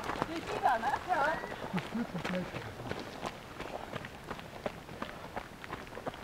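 Runners' footsteps crunch on a gravel path.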